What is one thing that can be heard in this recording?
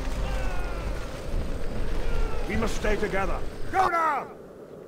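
Armies clash in a battle with a low, steady rumble.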